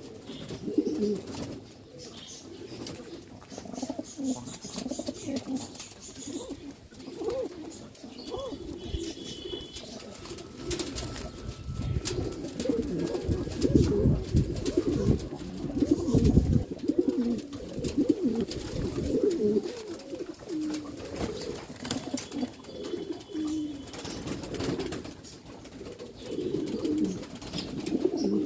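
Several pigeons coo low and throatily, close by.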